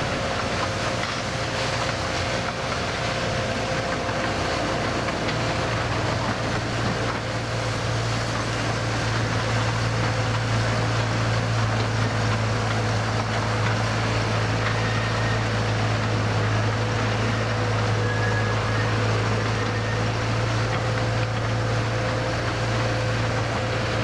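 A small train rumbles and clatters steadily along its track.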